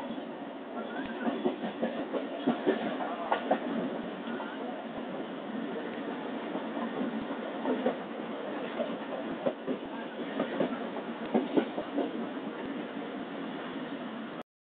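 A vehicle rumbles and rattles along a road.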